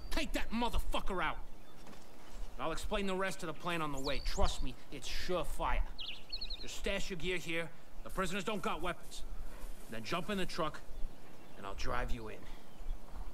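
A man speaks calmly, close by, in a gruff voice.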